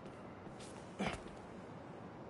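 A soft thud of a landing sounds once.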